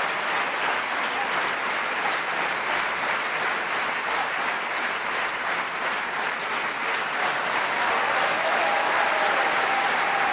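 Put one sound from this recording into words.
A large audience applauds loudly and steadily in a big echoing hall.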